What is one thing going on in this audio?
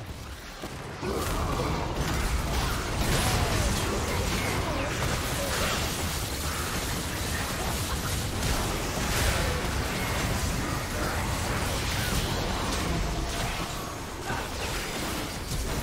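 Magic blasts and explosions crackle and boom in a busy fight.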